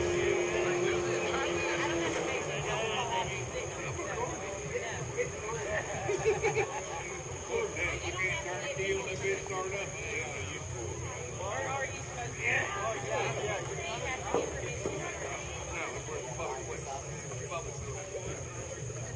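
A crowd of people chatters and calls out at a distance outdoors.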